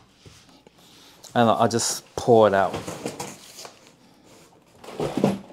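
Cardboard flaps rustle and scrape as a box is handled.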